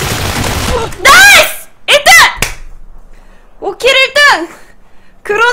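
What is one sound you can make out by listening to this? A young woman squeals and cheers excitedly into a microphone.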